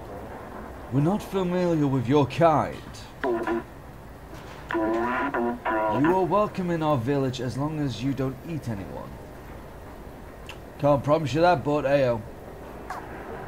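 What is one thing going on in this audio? A man talks with animation close to a microphone.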